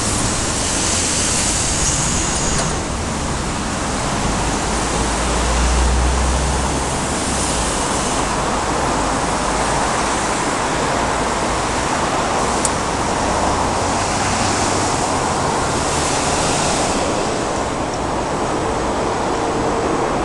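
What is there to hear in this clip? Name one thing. Passing cars whoosh by one after another.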